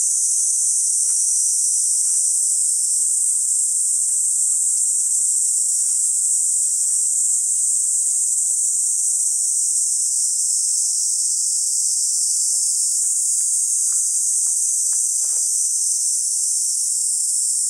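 Leaves rustle softly in a light breeze.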